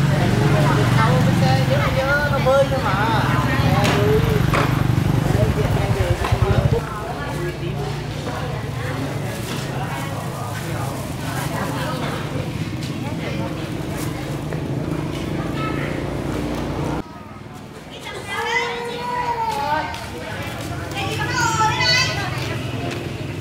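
Young women talk with animation nearby, outdoors.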